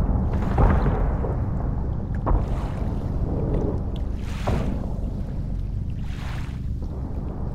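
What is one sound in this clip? Gunfire rattles in bursts far off.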